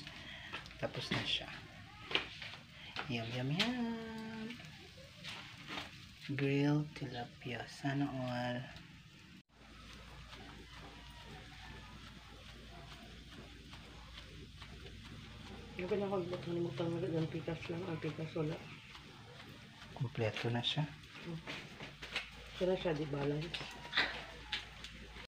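Fish sizzle softly over glowing charcoal.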